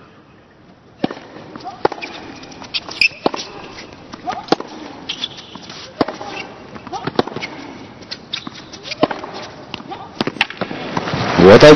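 Tennis racquets strike a ball back and forth in a rally on a hard court.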